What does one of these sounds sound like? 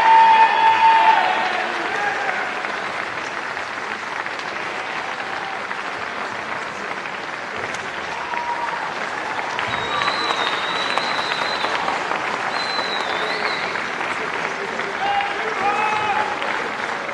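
A man announces over a loudspeaker, echoing through the hall.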